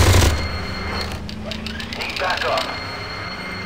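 A rotary gun fires in a rapid rattling burst.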